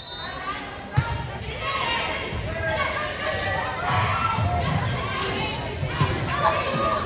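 A volleyball is struck with sharp thumps.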